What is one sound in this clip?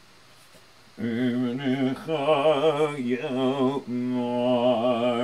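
An elderly man chants in a strong, wavering singing voice close by.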